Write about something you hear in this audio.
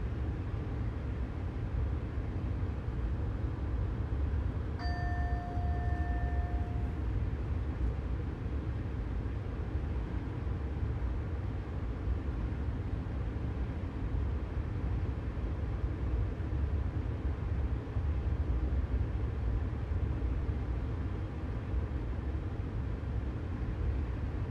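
A train rumbles steadily along the tracks, heard from inside the cab.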